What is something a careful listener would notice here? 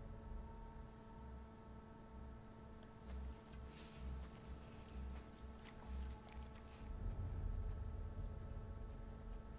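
Footsteps thud softly on the ground.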